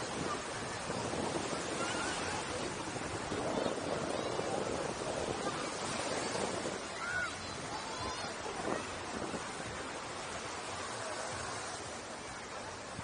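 Waves wash up on a beach.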